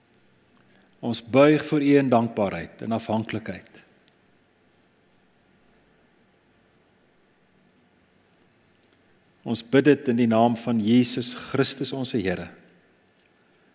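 An older man speaks calmly through a microphone, pausing between phrases.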